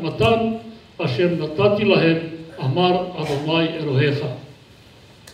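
An elderly man reads aloud into a microphone in a slow, measured voice.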